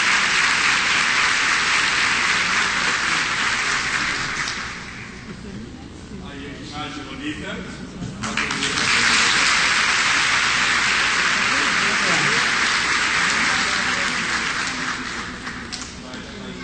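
A crowd applauds loudly.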